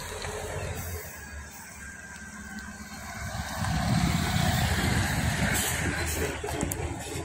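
A bus engine rumbles as the bus approaches, passes close by and moves away.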